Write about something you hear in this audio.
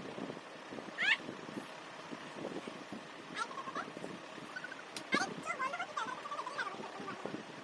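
A girl laughs loudly.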